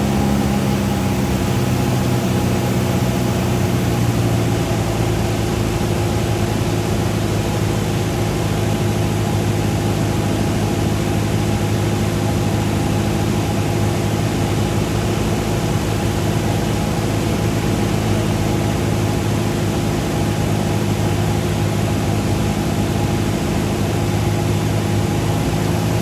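A small plane's propeller engine drones loudly and steadily from close by.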